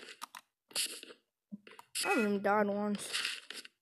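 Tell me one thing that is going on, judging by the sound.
A block cracks and breaks with a crunch.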